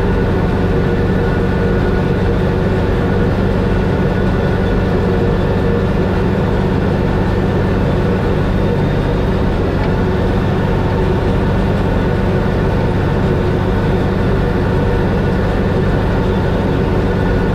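A tractor engine rumbles loudly and steadily close by.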